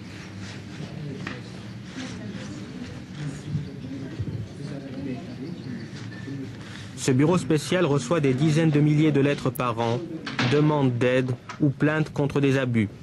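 Paper rustles as hands handle sheets.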